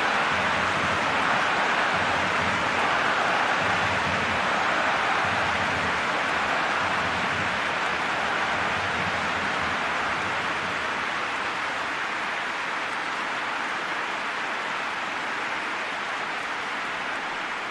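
A large crowd cheers and roars steadily, slowly fading.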